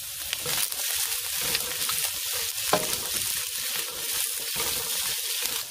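A spatula scrapes against a metal wok.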